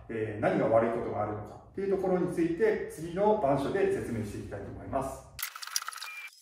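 A man speaks calmly, lecturing close to a microphone.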